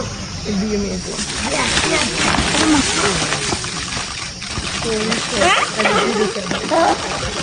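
Dry leaves rustle and crunch as animals struggle on the ground.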